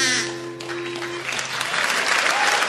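A harmonica plays sustained notes close up.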